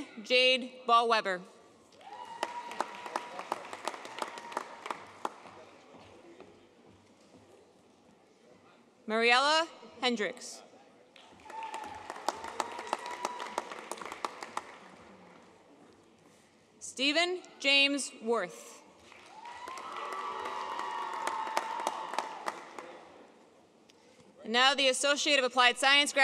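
A woman reads out names through a microphone in a large echoing hall.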